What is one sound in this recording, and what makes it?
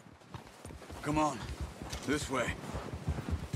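A man speaks briefly from a short way off.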